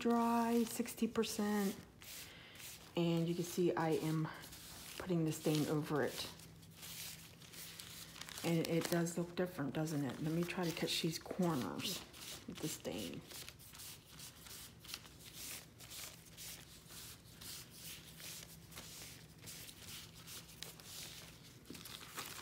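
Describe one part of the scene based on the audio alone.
A sponge dabs and pats softly on damp paper.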